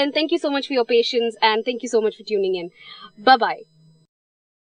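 A young woman speaks clearly through a microphone.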